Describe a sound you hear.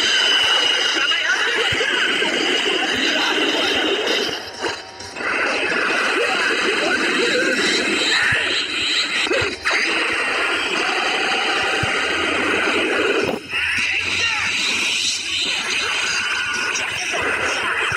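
Energy blasts whoosh and explode loudly.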